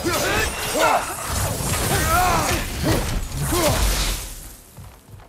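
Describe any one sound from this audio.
A creature shrieks and snarls.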